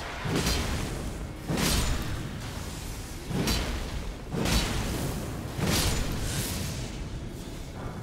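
Heavy blades slash and strike with sharp impacts.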